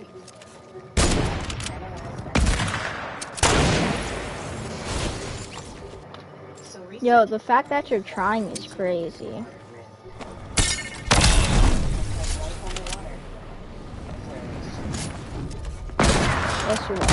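Gunshots crack loudly, one at a time, with a ringing tail.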